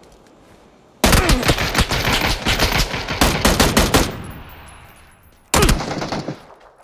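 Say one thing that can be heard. Rifle shots fire in rapid bursts, ringing out across open ground.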